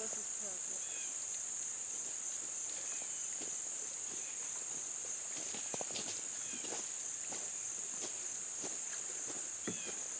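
A kayak paddle dips and splashes softly in calm water some way off.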